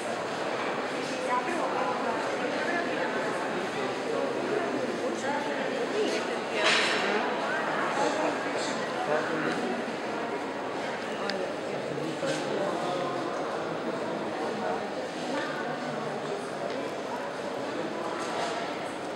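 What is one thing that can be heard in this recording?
A crowd of visitors murmurs and talks at a distance in a large echoing hall.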